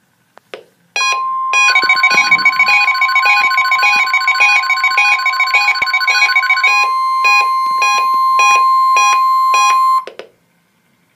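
A weather radio plays a warbling alert signal with a long steady tone.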